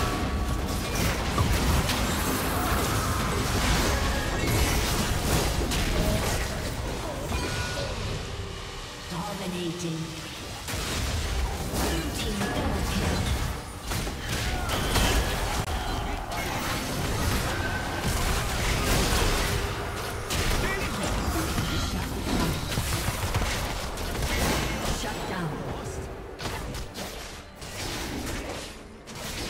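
Magic blasts and impacts crackle in quick bursts during a fast fight.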